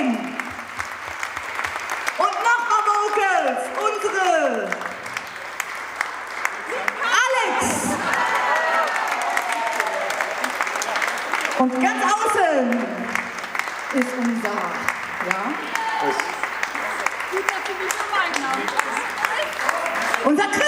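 A crowd cheers and whoops loudly in a large hall.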